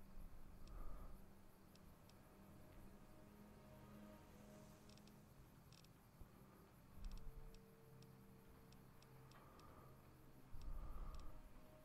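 Short electronic clicks tick as a menu selection steps through a list.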